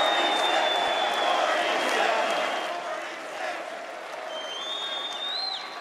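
A crowd claps loudly.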